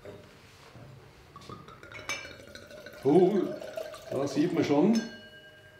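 Wine glugs as it is poured into a glass.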